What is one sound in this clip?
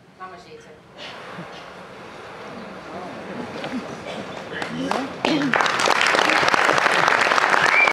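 An audience claps and applause swells as the curtain closes.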